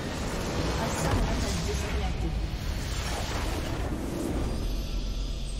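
A loud magical blast bursts and crackles.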